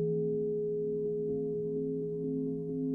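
A mallet rubs around a bowl's rim with soft ticks.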